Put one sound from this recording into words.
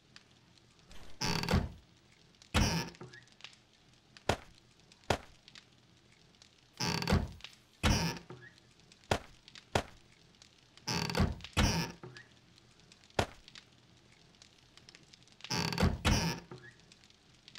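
Wooden cabinet doors swing open and shut with short creaks and thuds.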